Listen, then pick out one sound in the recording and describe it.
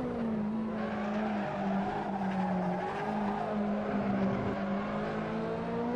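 Tyres squeal on tarmac through a bend.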